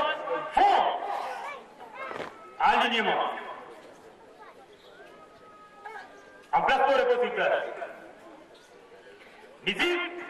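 A large group of young people sings out loudly in short bursts outdoors.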